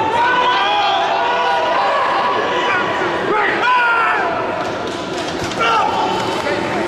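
Men shout encouragement loudly in an echoing hall.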